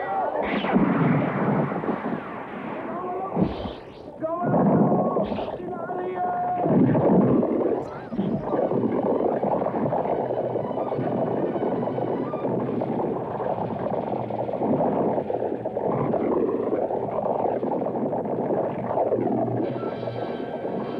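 Horses' hooves clatter at a gallop on a dirt track.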